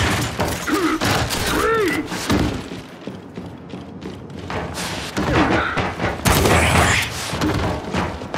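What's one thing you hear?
Heavy armoured footsteps thud on a metal floor.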